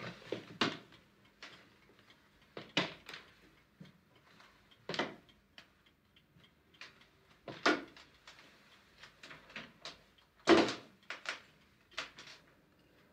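Footsteps with a tapping cane walk slowly away on a hard floor.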